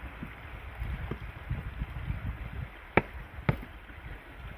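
Wooden logs knock together as they are shifted.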